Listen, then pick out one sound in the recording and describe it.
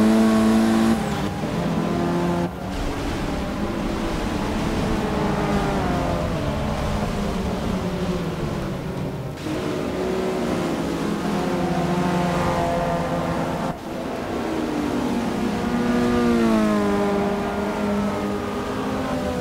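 Several racing car engines roar past one after another.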